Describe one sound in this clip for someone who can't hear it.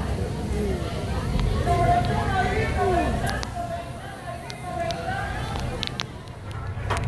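A crowd chatters at a distance outdoors.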